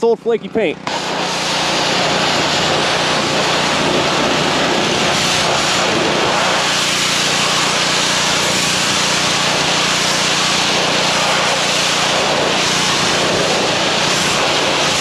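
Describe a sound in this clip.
A pressure washer sprays water with a steady loud hiss.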